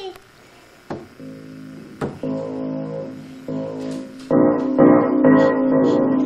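Piano keys are pressed, playing loud, clashing notes.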